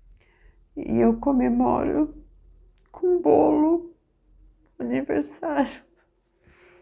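A middle-aged woman speaks emotionally, close to a microphone.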